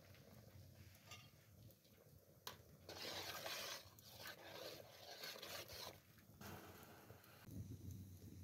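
Water boils and bubbles in a pot.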